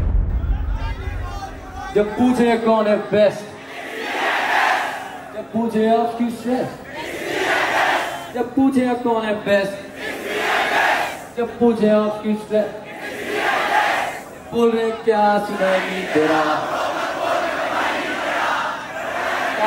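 A man raps into a microphone through loud speakers.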